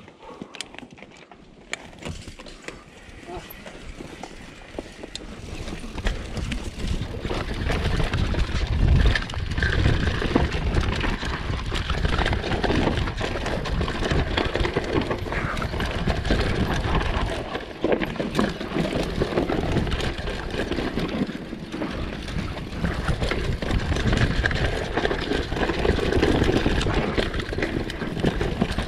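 Bicycle tyres roll and skid over a loose dirt trail.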